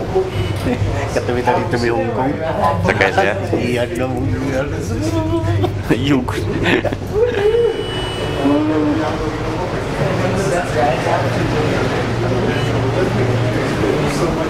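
Several adults chat and talk over one another close by.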